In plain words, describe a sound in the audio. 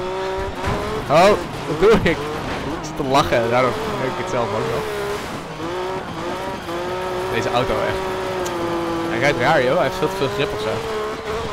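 Tyres screech and skid as a car slides through corners.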